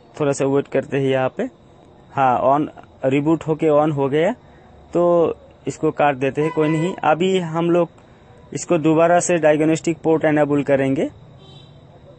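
A young woman speaks calmly and clearly into a microphone, with short pauses.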